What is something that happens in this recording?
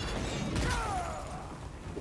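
A fiery blast bursts with a roar.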